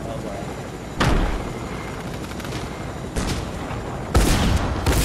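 Jet thrusters blast in loud bursts.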